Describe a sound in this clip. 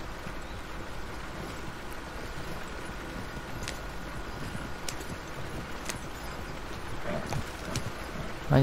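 A wooden wagon rattles and creaks as it rolls over a dirt track.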